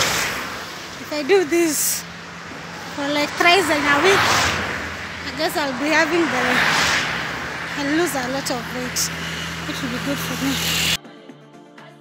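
A young woman talks calmly and close to a microphone, outdoors in wind.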